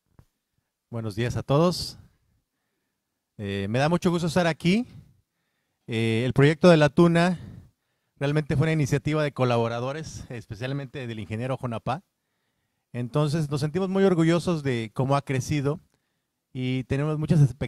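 A man speaks into a microphone with animation, heard through loudspeakers.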